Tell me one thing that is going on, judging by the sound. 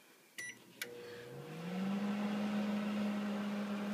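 A microwave oven hums as it runs.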